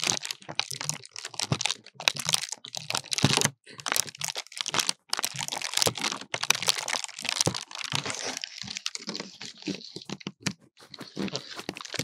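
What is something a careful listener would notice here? Dry grass leaves brush and scratch close by.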